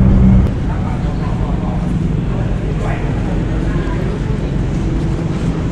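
Footsteps walk on a tiled floor.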